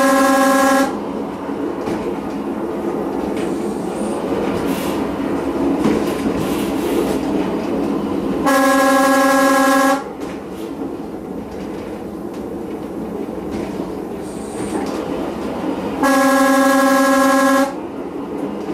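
A train horn sounds several long, loud blasts.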